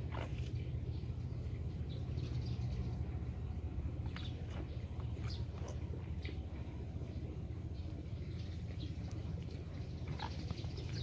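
Water gently laps and trickles nearby.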